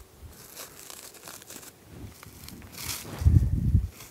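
Plastic wrap crinkles as it is handled.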